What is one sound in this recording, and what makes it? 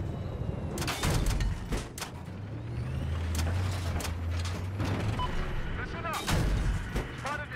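Heavy explosions boom.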